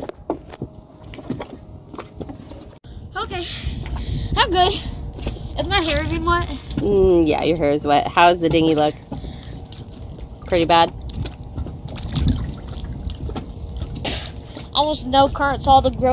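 Water splashes softly as someone swims.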